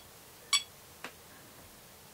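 A small button clicks.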